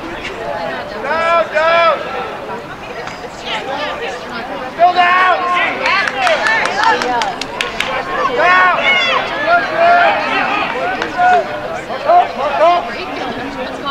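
Young male players shout across an open field.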